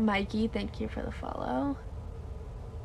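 A young woman talks casually close to a microphone.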